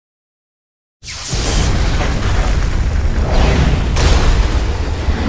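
A heavy explosion booms and rumbles with flying debris.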